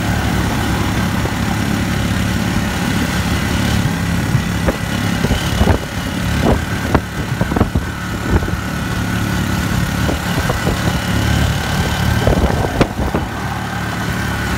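A vehicle's engine hums steadily while driving along a road.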